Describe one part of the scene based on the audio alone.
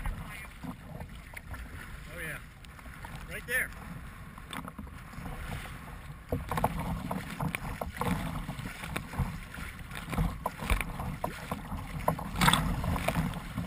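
Choppy water slaps and splashes against a kayak's hull.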